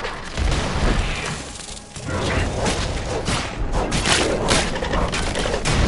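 Electric zaps crackle and buzz in a video game.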